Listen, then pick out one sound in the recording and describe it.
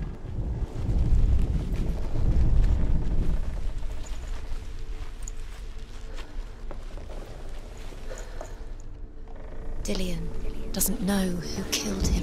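Footsteps tread slowly over stone and dry leaves.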